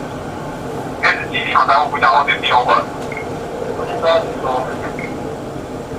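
A young man announces over a loudspeaker.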